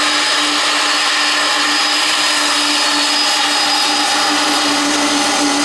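A jet airliner's engines roar and whine steadily close by.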